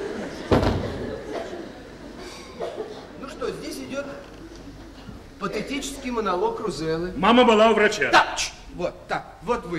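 A man speaks with feeling in an echoing hall.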